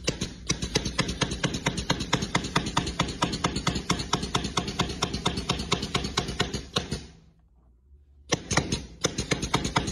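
A small machine ticks rapidly and steadily, pausing briefly near the end.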